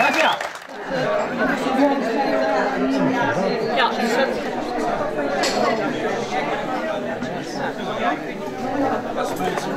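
A crowd of people chatters in a busy indoor room.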